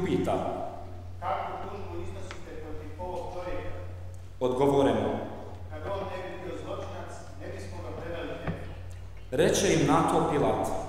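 A man reads aloud through a microphone in an echoing hall.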